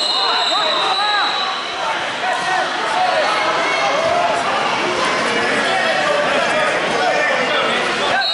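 Many voices of a crowd chatter and call out in a large echoing hall.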